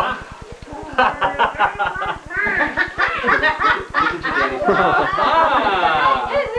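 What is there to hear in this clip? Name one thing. A man exclaims excitedly nearby.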